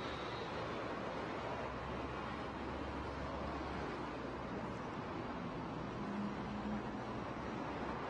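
A motorcycle engine hums close by.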